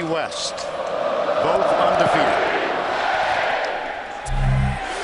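A large stadium crowd swells into a loud cheer.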